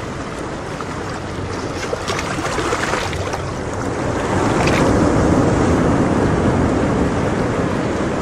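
Water bubbles and gurgles steadily in a fish tank.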